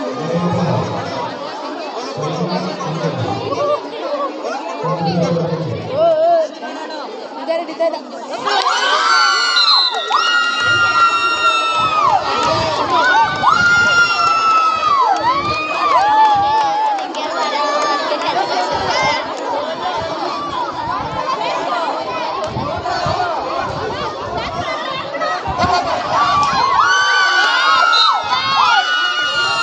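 A large crowd of young women cheers and screams excitedly outdoors.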